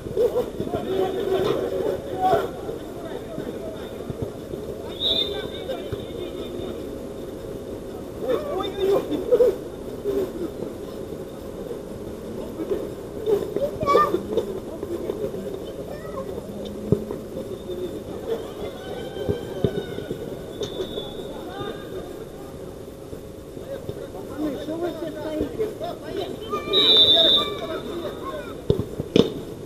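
Young men shout and call to each other across an outdoor pitch.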